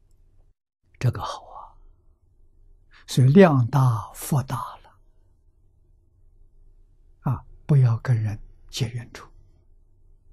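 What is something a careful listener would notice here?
An elderly man speaks calmly and slowly, in short phrases, close to a microphone.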